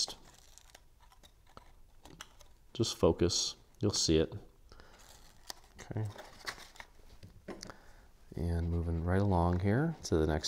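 Stiff paper rustles and creases as hands fold it.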